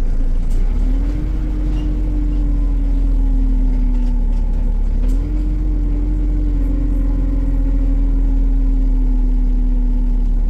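The bus rattles and rumbles over the road.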